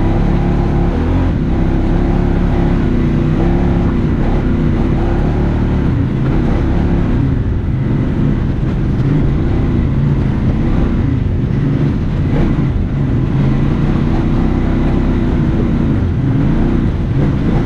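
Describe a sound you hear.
Tyres crunch over a rough dirt trail.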